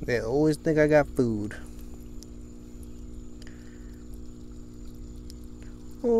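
Water splashes softly as a hand scoops through it.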